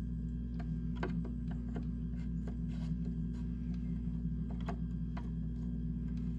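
A wall switch clicks as it is flipped.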